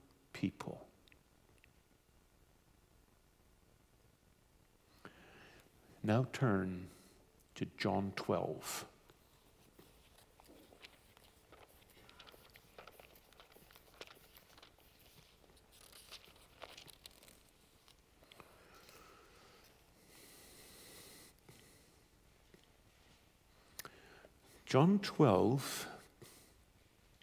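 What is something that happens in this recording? A middle-aged man speaks slowly into a microphone, with long pauses.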